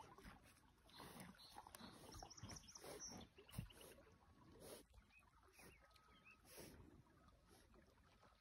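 A horse snuffles and breathes loudly up close.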